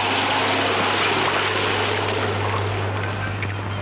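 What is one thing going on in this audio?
A car engine hums as a car rolls slowly away over wet ground.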